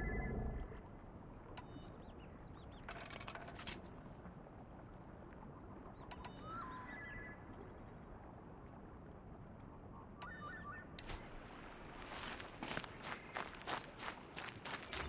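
Soft wind blows steadily outdoors.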